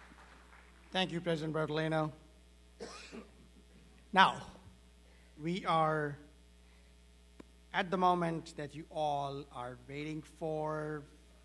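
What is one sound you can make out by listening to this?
A second man speaks calmly into a microphone over loudspeakers in a large hall.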